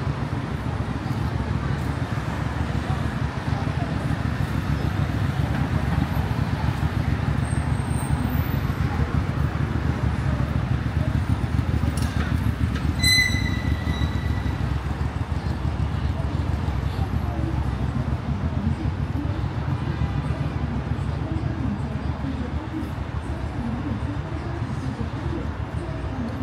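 A steady low rumble of distant city traffic fills the open air.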